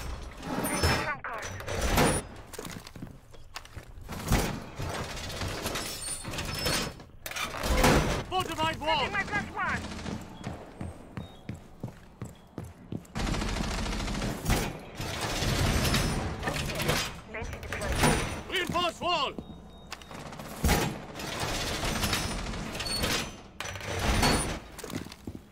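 Heavy metal panels clank and slam repeatedly against a wall.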